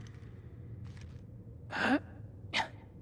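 A hand brushes against a rough wall.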